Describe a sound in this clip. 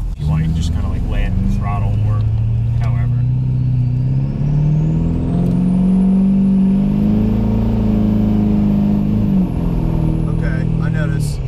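A car engine hums steadily, rising in pitch before dropping back.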